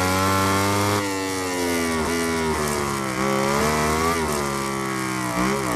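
A motorcycle engine drops in pitch as it slows for a bend.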